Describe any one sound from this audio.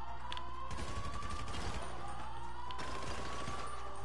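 Gunfire rings out in quick bursts.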